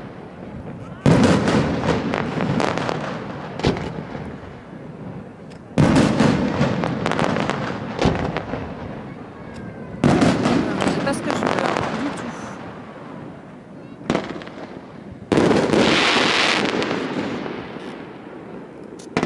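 Fireworks crackle and fizz after bursting.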